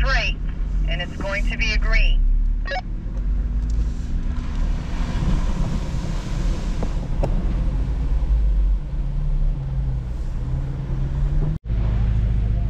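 An engine rumbles as a vehicle drives slowly over rough dirt.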